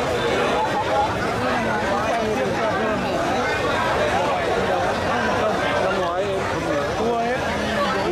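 A large outdoor crowd chatters and calls out loudly.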